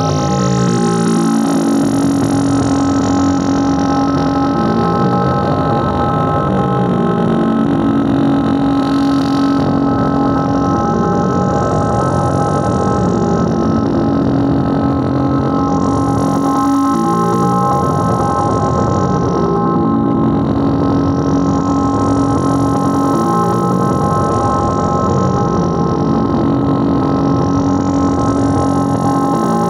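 An electronic drum machine plays a looping synth pattern with sweeping filtered tones.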